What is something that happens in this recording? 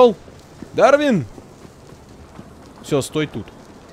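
Footsteps run on cobblestones.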